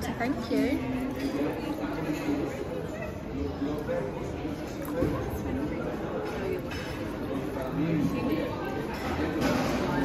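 Water pours from a jug into a glass.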